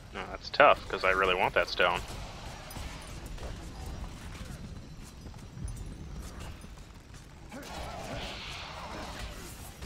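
A sword slashes and clashes against enemies in combat.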